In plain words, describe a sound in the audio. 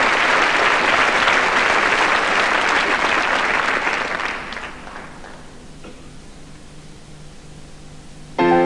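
A piano plays softly.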